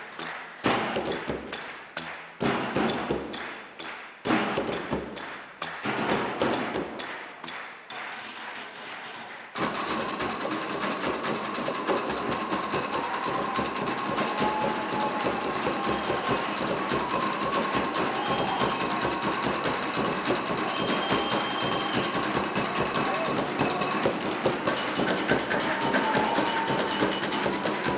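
Barrels are beaten like drums in a loud, pounding rhythm.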